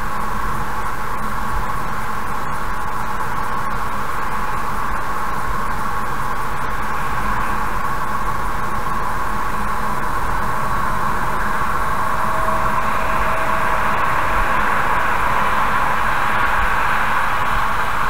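Tyres hum steadily on a highway as a car drives along.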